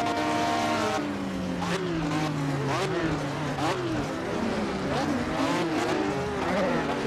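A racing car engine drops in pitch and revs up and down as the car slows.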